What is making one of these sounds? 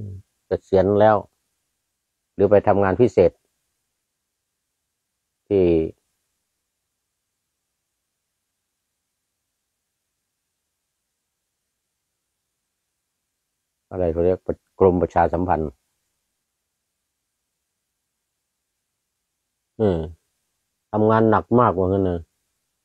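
An elderly man speaks calmly and slowly close to a microphone, with long pauses.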